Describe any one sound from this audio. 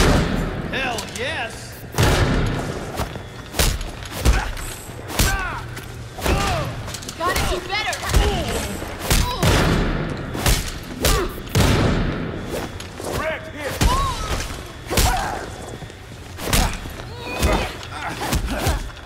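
Men grunt and shout as they are hit.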